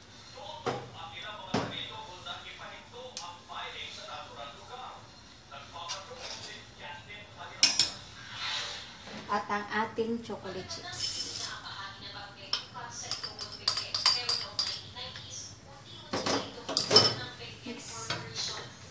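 A wooden spoon scrapes and clinks against a metal pot.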